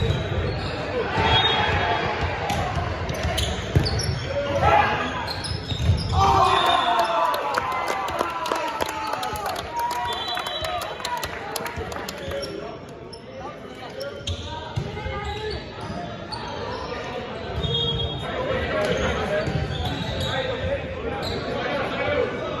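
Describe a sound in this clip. Young men on a team shout and cheer.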